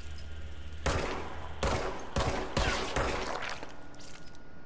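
Loud blasts and bursts of shattering debris ring out.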